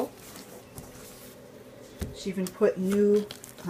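A hand taps on a hardcover book.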